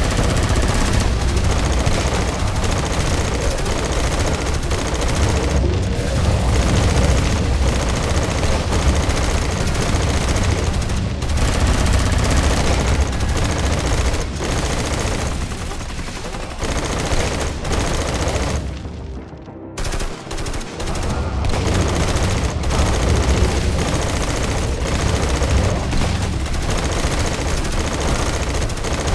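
Flamethrowers roar in bursts.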